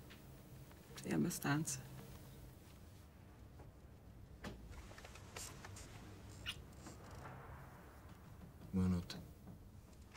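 A man answers quietly nearby.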